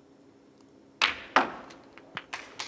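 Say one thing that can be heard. A cue ball cracks into a pack of snooker balls, which click apart.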